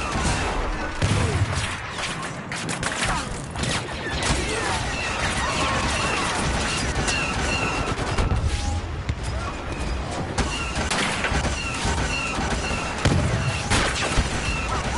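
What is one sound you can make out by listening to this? Explosions boom with deep rumbles.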